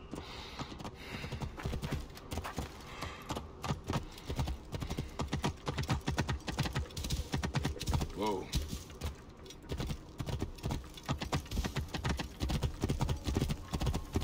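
Hooves thud rapidly as a horse gallops over hard ground.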